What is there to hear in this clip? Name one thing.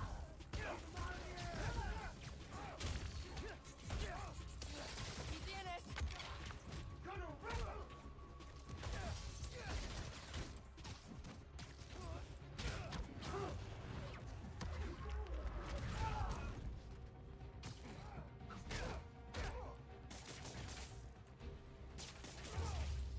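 Punches and kicks land with heavy thuds.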